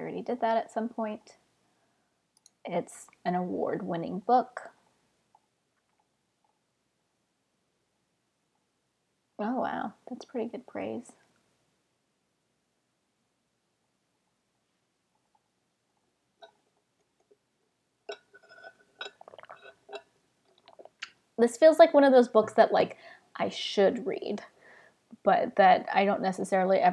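A young woman talks calmly and casually into a close microphone, with pauses.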